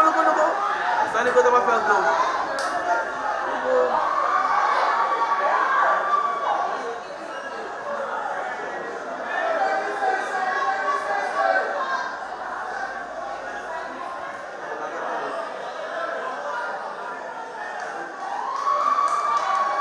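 Young men and women shout and argue with one another outdoors.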